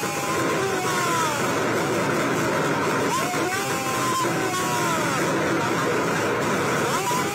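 A large crowd chatters and cheers loudly outdoors.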